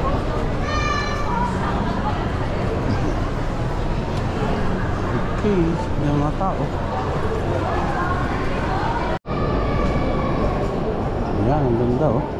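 A crowd of people chatters and murmurs in a large echoing hall.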